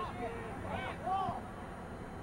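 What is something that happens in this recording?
A ball is kicked with a thud.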